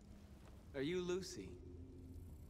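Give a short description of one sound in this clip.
A man asks a short question quietly.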